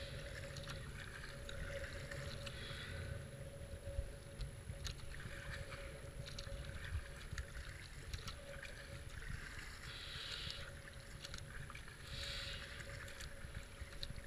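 Fast water ripples and gurgles around a kayak.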